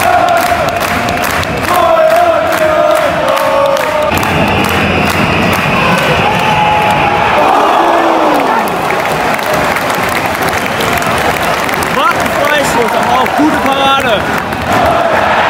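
A large stadium crowd chants and sings loudly in the open air.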